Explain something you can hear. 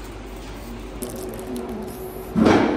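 Paper wrapping crinkles as a burger is unwrapped.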